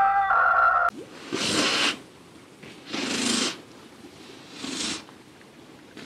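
A hippo bellows in short, harsh bursts.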